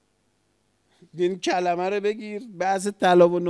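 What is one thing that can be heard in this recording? A middle-aged man speaks with animation into a microphone.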